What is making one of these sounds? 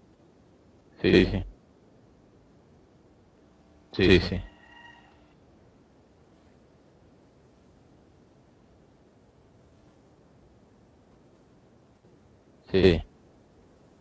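A young man calls out loudly in short bursts over an online call.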